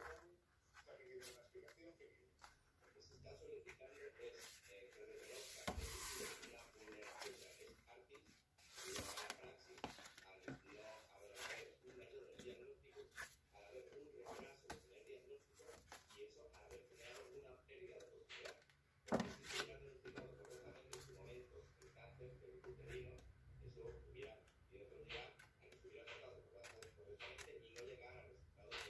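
Paper pages rustle and flap as they are turned one by one.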